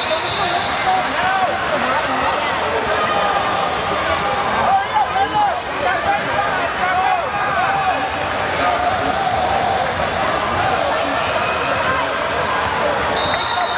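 Sneakers squeak sharply on a hardwood court, many times.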